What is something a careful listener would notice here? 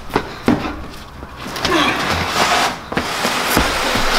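Cardboard boxes topple and slap onto a hard floor.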